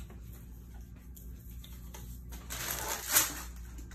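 Paper crinkles and rustles.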